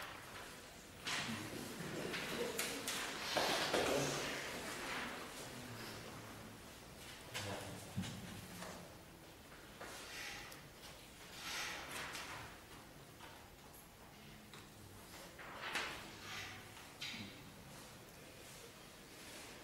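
A small group of clarinets plays a slow piece in a reverberant room.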